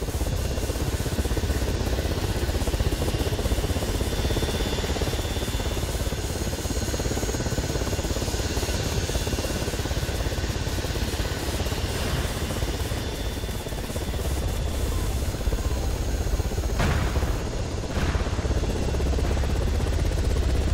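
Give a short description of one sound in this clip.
A helicopter's rotor thumps and its engine drones steadily close by.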